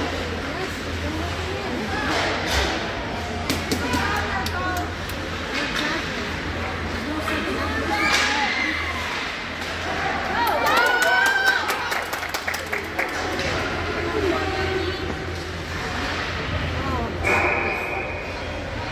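Skates scrape and hockey sticks clack on the ice in a large echoing rink.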